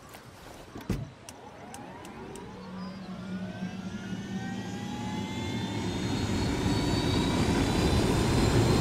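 A helicopter engine starts up with a rising whine.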